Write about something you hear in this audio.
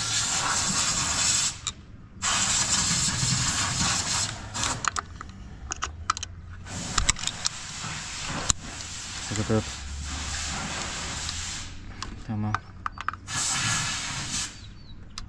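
Metal tools clink and scrape against an engine.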